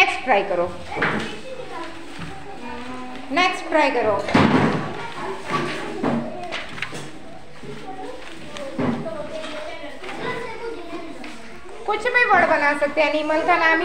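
Paper sheets rustle as children shuffle them.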